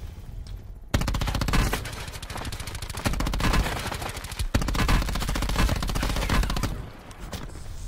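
Rapid gunfire bursts out.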